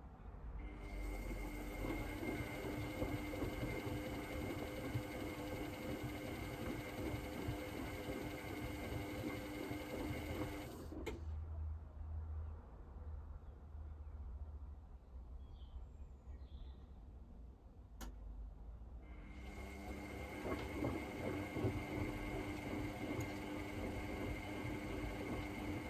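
Water sloshes and churns inside a washing machine drum as it turns.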